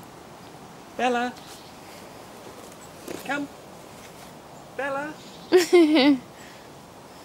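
A kitten meows loudly several times, close by.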